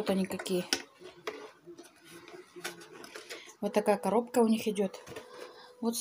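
A cardboard box rustles as hands handle it.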